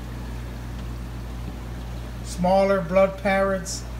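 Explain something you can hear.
Air bubbles gurgle in a fish tank.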